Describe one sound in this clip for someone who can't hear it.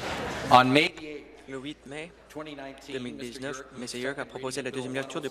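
A middle-aged man speaks calmly and formally through a microphone.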